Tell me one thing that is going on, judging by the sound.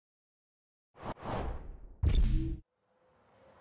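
A sports car engine revs loudly.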